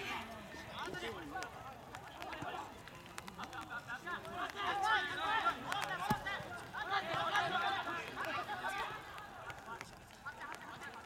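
Young male players shout to each other across an open field.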